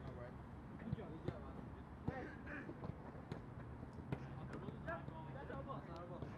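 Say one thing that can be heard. Young men call out to each other across an open field outdoors.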